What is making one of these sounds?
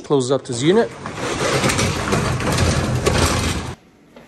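A metal roll-up door rattles loudly as it is pulled down.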